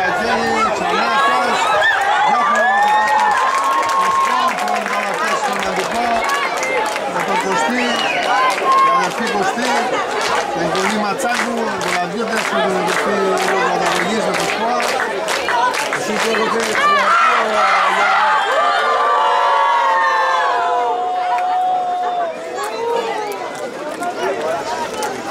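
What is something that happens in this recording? A crowd of spectators murmurs and calls out nearby outdoors.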